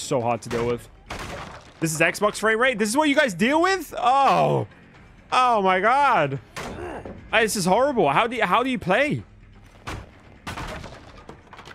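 Wooden planks crash and splinter as they break.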